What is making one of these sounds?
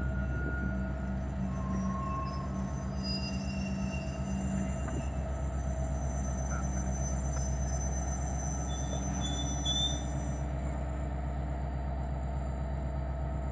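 Diesel locomotive engines rumble loudly and steadily close by.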